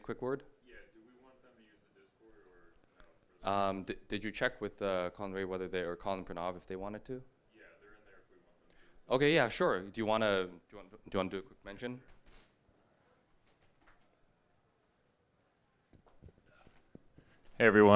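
A young man speaks calmly into a microphone over loudspeakers in a large hall.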